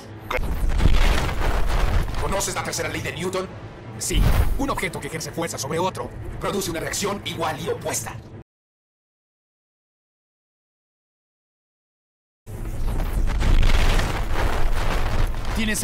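Flames whoosh and roar.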